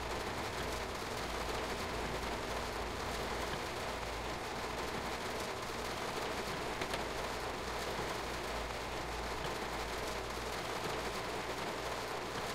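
A train rumbles low and steadily along the tracks.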